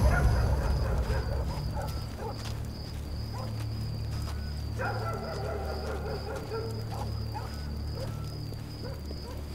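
Footsteps walk slowly on stone.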